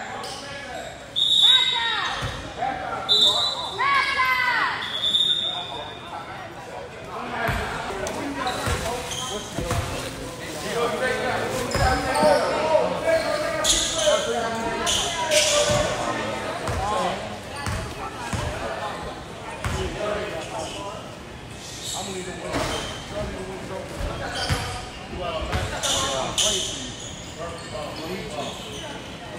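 Men shout and call out to each other across an echoing gym.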